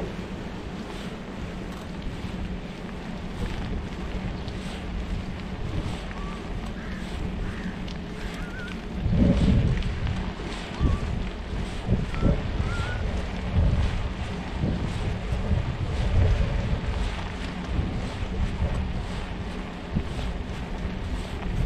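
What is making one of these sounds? Tyres roll steadily over asphalt.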